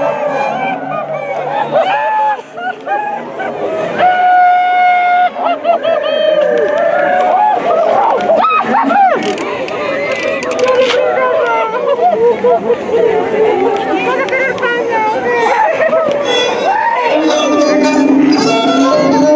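Men and women in the crowd whoop and call out loudly.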